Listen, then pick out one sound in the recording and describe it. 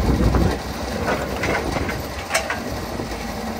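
An excavator bucket scrapes and knocks against wet earth and rubble.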